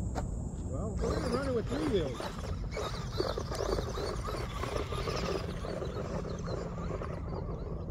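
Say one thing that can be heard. Tyres of a toy car scatter gravel and dirt.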